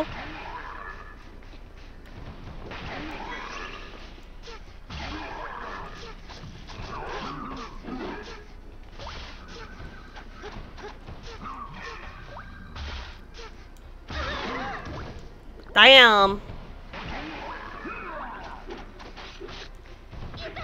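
Blades swish and strike in a fast melee fight.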